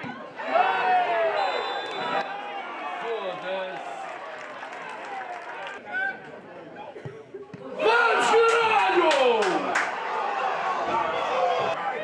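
Young men shout and call out across an open outdoor pitch.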